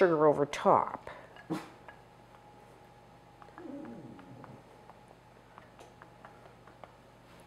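A spatula scrapes softly against a dish of berries.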